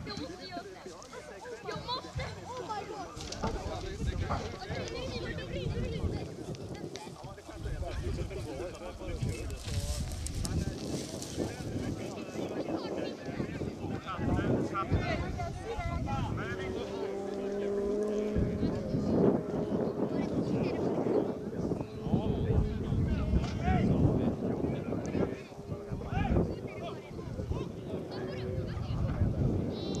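A group of men talk and call out to each other outdoors.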